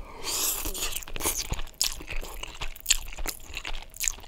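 A man slurps spaghetti close to a microphone.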